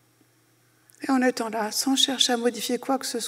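A middle-aged woman speaks calmly into a microphone in a large hall.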